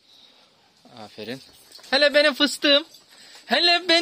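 A dog whines and yelps excitedly close by.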